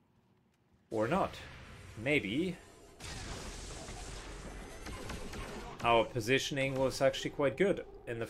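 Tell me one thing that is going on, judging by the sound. Energy weapons fire in rapid bursts.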